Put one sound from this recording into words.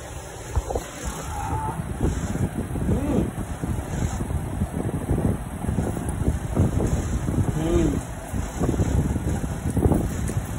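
A man crunches and chews food close by.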